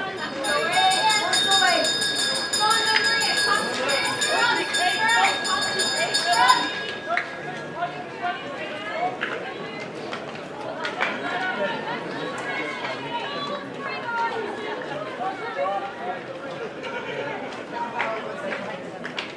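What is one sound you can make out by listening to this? Young women and men chatter and call out in the open air.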